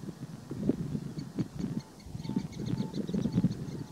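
Shallow water splashes softly as a duck moves through it.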